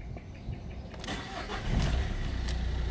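A car engine cranks and starts up.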